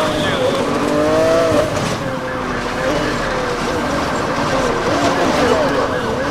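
A sports car engine roars at high revs.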